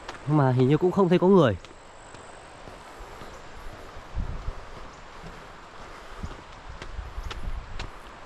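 Footsteps scuff on a dirt path.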